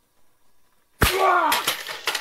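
A stick strikes with a sharp smack.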